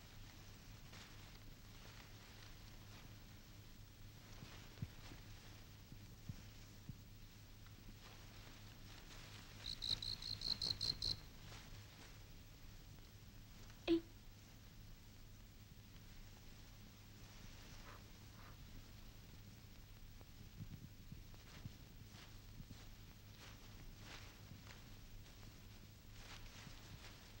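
Tall reeds rustle and swish as a boy pushes through them.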